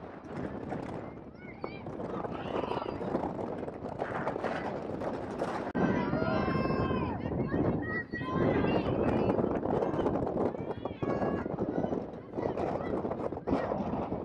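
Young women shout to each other across an open field outdoors.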